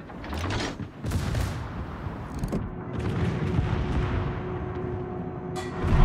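Shells whistle and explode with deep rumbling blasts.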